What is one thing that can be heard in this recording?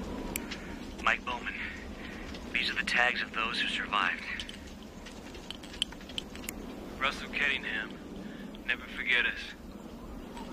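A man speaks quietly and tensely nearby.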